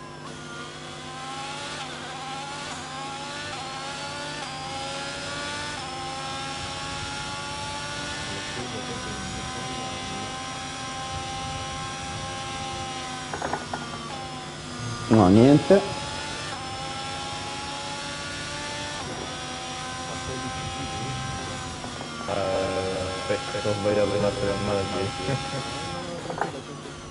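A racing car engine screams and climbs through the gears.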